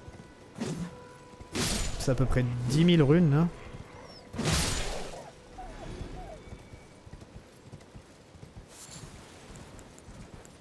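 Horse hooves thud on rocky ground.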